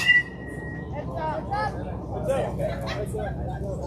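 Boys and men call out loudly on an open field.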